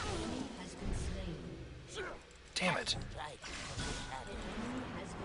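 Magic spells whoosh and crackle in a fast game battle.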